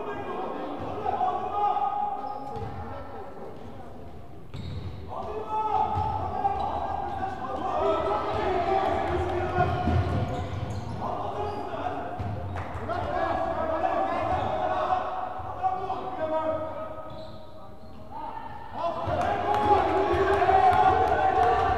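A crowd of spectators chants and cheers loudly in a large echoing hall.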